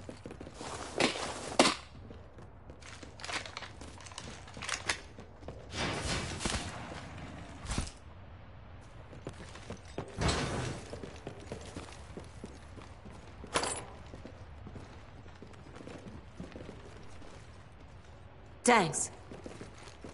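Gunshots fire in short bursts.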